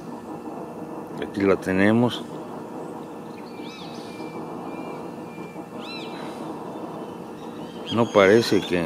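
A bee's wings buzz as it struggles in water.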